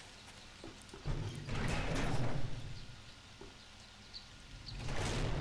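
A heavy metal door creaks and scrapes as it swings open.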